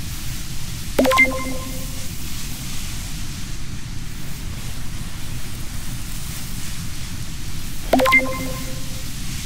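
A short electronic chime rings out.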